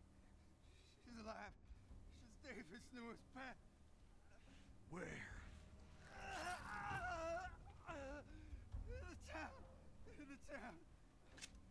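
A man speaks in a strained, pained voice close by.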